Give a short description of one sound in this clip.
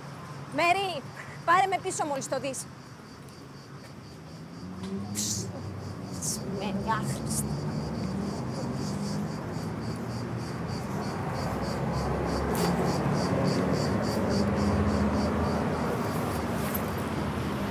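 Traffic drives past on a city street.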